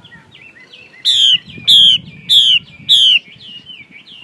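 A caged songbird gives four loud, sharp whistled calls in a row.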